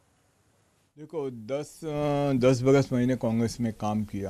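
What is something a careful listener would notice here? A middle-aged man speaks into a handheld microphone at close range.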